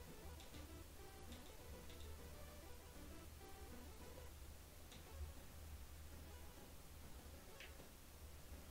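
Electronic blips and chimes from a handheld-console-style video game play.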